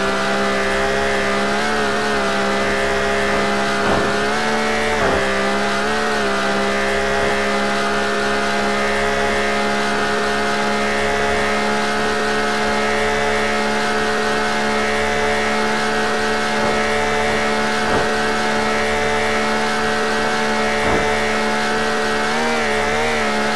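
A car engine hums steadily at high speed.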